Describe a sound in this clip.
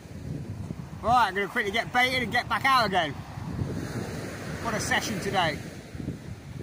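A middle-aged man talks calmly, close to the microphone, outdoors in wind.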